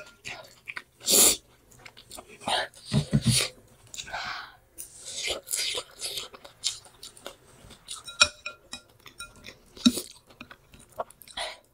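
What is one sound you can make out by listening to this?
A metal fork clinks against a glass bowl.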